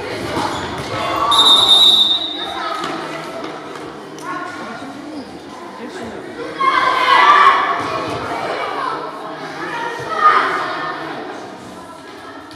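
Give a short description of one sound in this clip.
Young children shout and call out in a large echoing hall.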